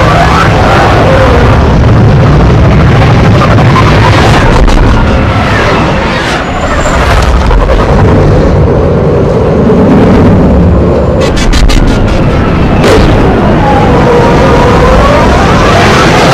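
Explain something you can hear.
Spacecraft engines roar with a deep rumble.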